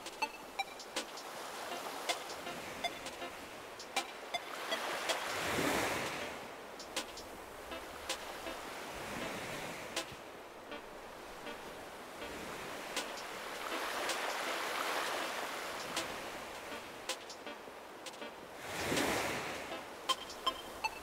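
Waves wash gently onto a shore in slow surges.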